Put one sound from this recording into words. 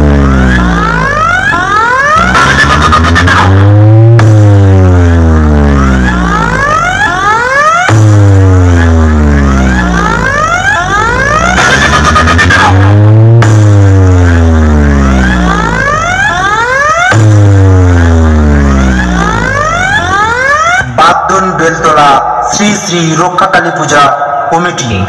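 Loud electronic music with rising and falling sweeping tones and deep booming bass blares from a huge loudspeaker stack outdoors.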